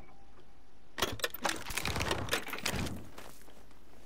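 Metal latches clatter and things rattle as a box is searched.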